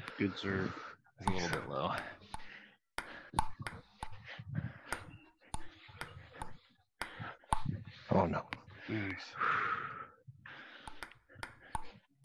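A ping-pong ball clicks sharply against paddles and bounces on a table.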